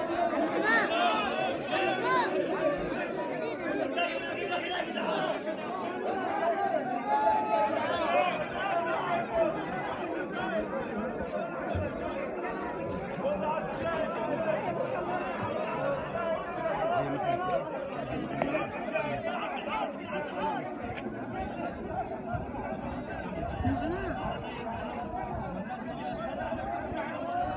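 A large crowd of men chants and shouts together outdoors.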